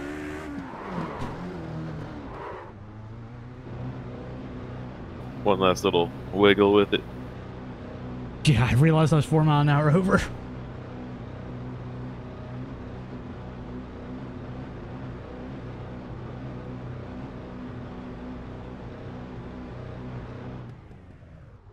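A racing car engine hums steadily at high revs and then winds down.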